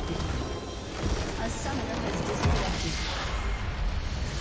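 A large magical explosion booms and roars in a video game.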